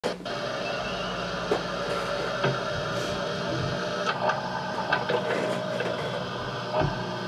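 An electric bass guitar plays a plucked bass line.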